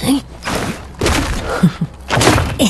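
A heavy weapon swings with a loud whoosh.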